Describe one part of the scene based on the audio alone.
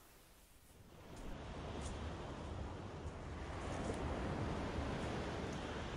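Small waves wash against the shore.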